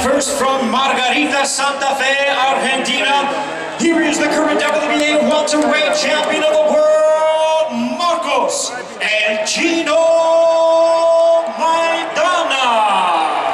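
A man announces loudly through a microphone over loudspeakers.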